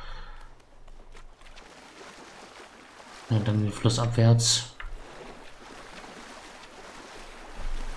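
Water splashes softly as a swimmer paddles.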